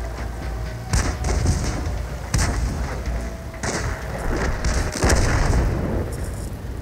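A tank cannon fires with loud bangs.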